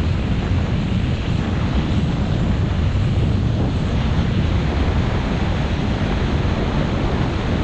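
Wind rushes loudly past close by.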